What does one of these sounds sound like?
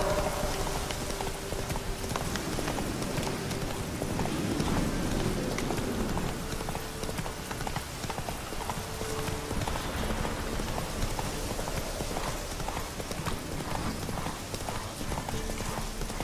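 Grass and brush rustle as a horse pushes through.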